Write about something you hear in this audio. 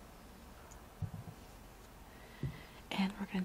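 A woman speaks briefly and calmly, close to a computer microphone.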